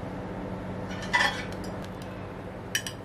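A metal strainer scrapes and splashes in a pan.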